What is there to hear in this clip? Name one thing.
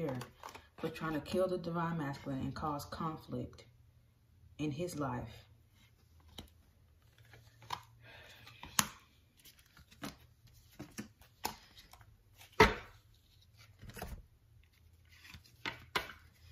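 Playing cards tap and slide against one another as they are handled and laid down.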